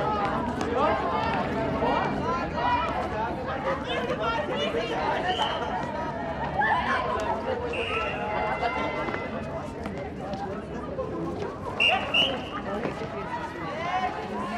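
A ball thuds on a hard court as it bounces.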